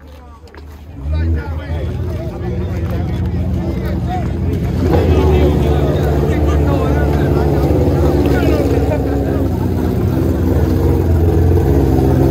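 A race car engine roars loudly and revs.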